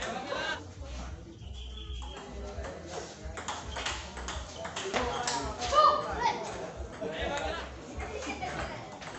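A ping-pong ball clicks back and forth on paddles and a table in a quick rally.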